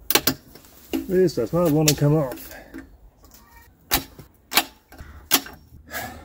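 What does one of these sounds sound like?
Plastic engine parts click and knock under a man's hands.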